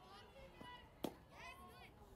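A bat cracks against a ball once.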